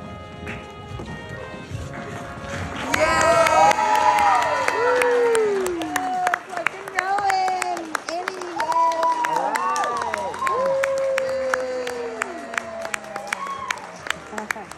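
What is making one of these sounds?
Hands clap in steady applause.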